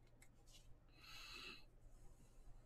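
A marker squeaks across a card.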